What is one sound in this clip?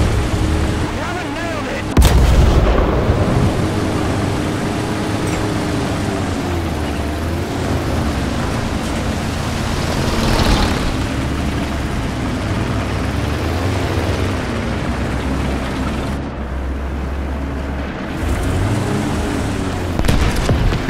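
Metal tank tracks clank and squeal.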